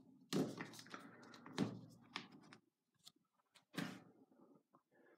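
A phone is handled and set down on a table with soft knocks.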